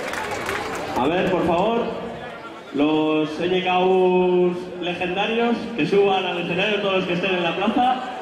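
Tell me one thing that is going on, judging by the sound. A man sings through a microphone over loudspeakers.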